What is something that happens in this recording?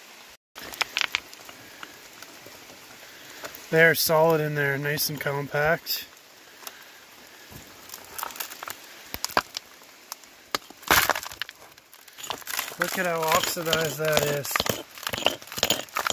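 A rock hammer chips and scrapes at stony soil.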